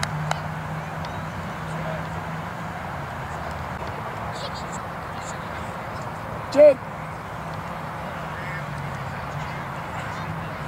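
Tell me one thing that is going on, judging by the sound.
Children and adults talk and call out faintly across an open field.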